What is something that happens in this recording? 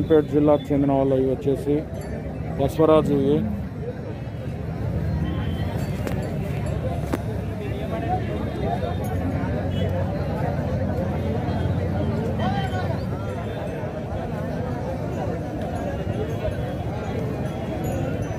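A crowd of men chatters in the open air.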